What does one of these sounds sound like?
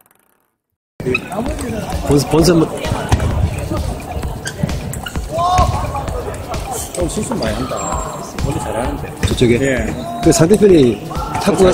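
Men and women chatter and call out in the background of a large echoing hall.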